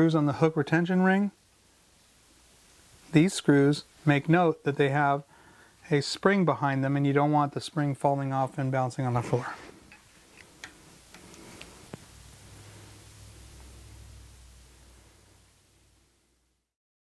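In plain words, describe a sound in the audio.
A screwdriver scrapes and clicks against metal.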